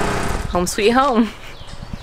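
A woman speaks close to the microphone.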